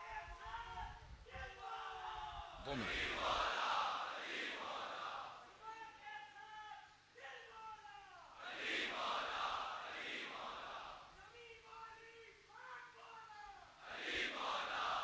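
A man chants loudly through a loudspeaker in a large echoing space.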